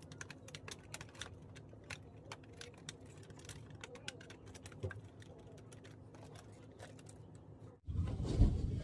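Plastic parts of a vacuum cleaner click and rattle as they are handled.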